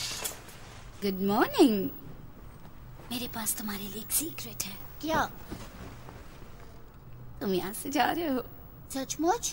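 A young woman speaks softly and warmly up close.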